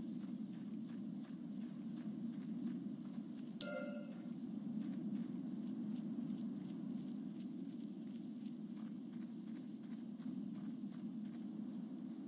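Footsteps tread softly along a dirt path.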